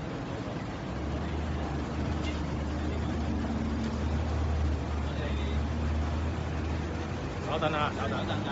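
A car engine hums as a vehicle passes on the street.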